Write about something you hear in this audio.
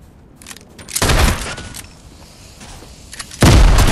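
A rifle fires loud, booming shots.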